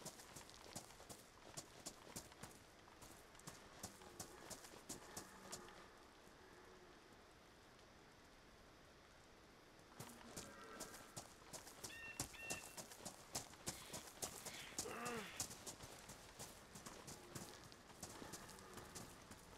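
Footsteps crunch quickly through grass.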